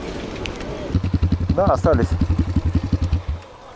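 A motorbike engine sputters and revs close by.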